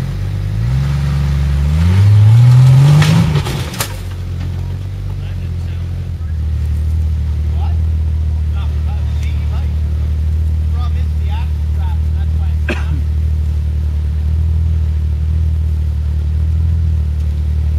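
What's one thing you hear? Tyres crunch and scrape over rocks and dirt.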